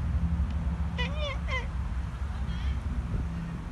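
A chicken clucks briefly nearby.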